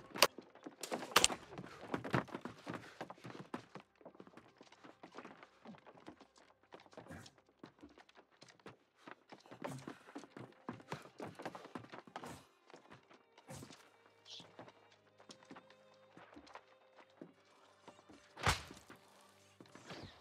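Footsteps thud quickly across wooden planks.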